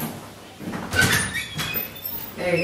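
A door latch clicks and a door swings open.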